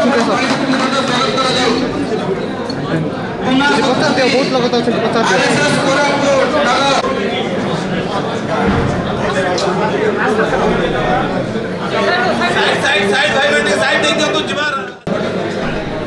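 A crowd of men and women chatter and talk over one another nearby.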